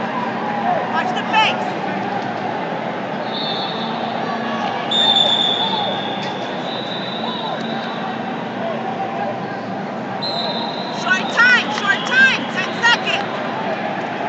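Shoes squeak sharply on a wrestling mat.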